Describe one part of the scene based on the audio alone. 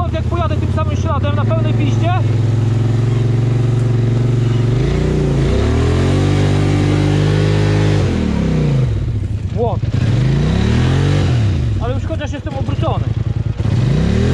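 Tyres churn through thick grass and mud.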